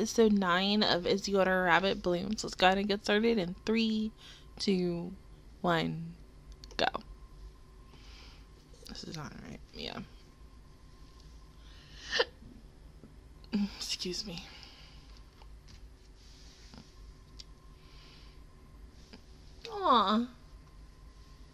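A young woman speaks with animation, close to a headset microphone.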